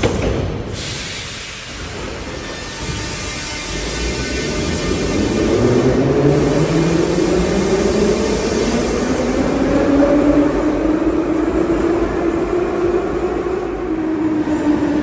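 A metro train pulls away, its motors whining higher as it speeds up.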